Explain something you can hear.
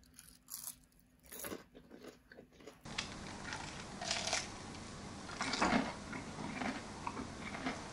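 A young woman crunches into a fried onion ring close to the microphone.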